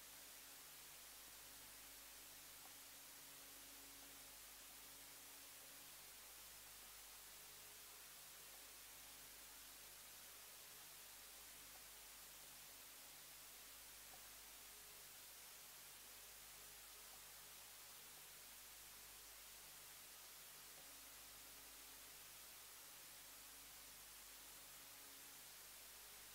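A drone string instrument hums steadily.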